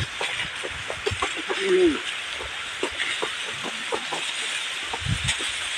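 Sugarcane stalks rustle and knock as they are carried.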